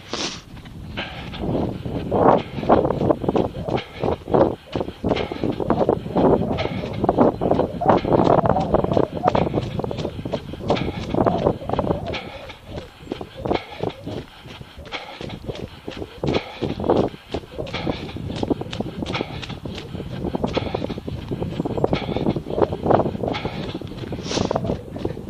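Footsteps crunch and thud on a snowy path in a steady running rhythm.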